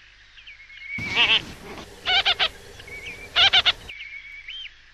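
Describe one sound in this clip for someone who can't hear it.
Birds chatter in loud, raspy bursts.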